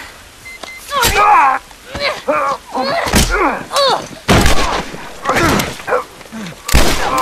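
People scuffle and shout loudly.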